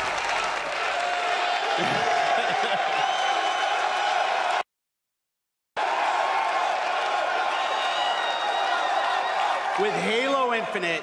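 A large crowd cheers and applauds loudly in a big hall.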